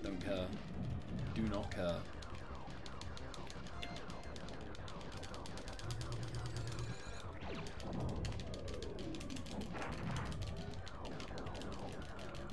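Fast electronic video game music plays throughout.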